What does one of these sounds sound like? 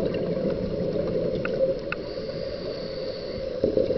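Air bubbles gurgle and rumble from a scuba diver's breathing regulator underwater.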